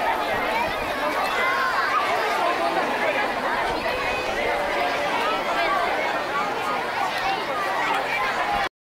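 A large crowd of people chatters and calls out loudly outdoors.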